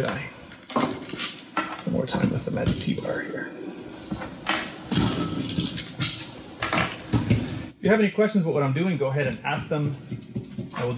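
Metal parts clink and tap as they are handled.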